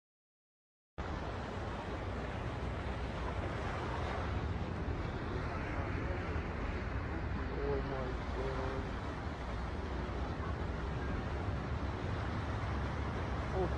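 Floodwater rushes and roars loudly.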